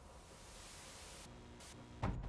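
Television static hisses softly.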